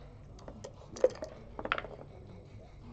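Dice rattle and clatter as they are rolled onto a board.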